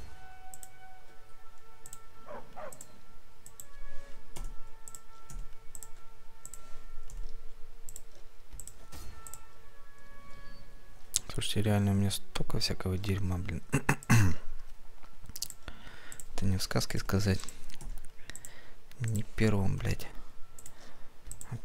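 Soft clicks tick as menu items are selected.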